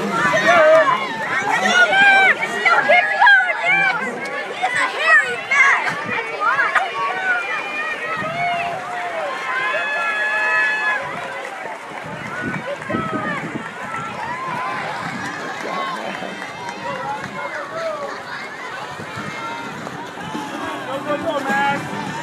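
Swimmers splash and churn the water.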